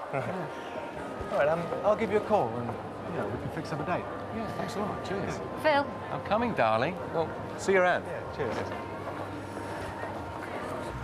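Men talk calmly amid a crowd's murmur.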